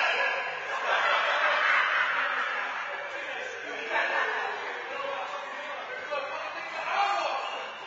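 A man talks in an echoing room.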